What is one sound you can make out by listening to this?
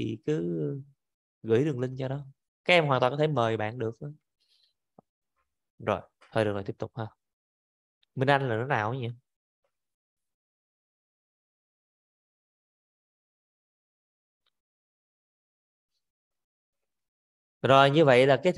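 A woman talks calmly into a microphone, in short bursts with pauses.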